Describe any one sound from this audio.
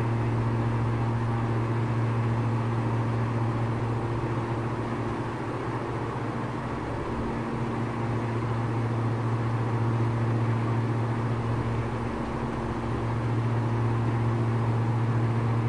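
A small plane's propeller engine drones steadily from inside the cabin.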